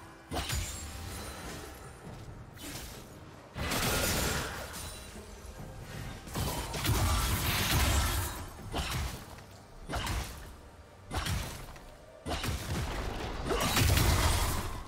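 Game combat effects clash and whoosh in bursts.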